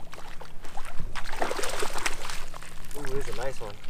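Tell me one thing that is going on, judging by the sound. A fish splashes in shallow water.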